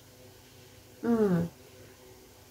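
A middle-aged woman gives a short, pleased hum close by.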